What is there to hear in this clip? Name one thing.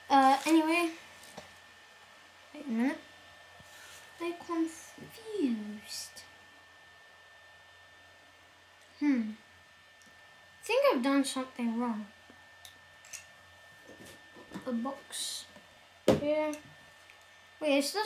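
A young child talks with animation close by.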